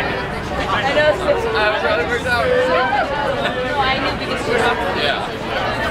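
A young man talks cheerfully close by.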